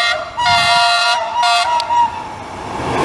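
A train horn blares loudly in short blasts.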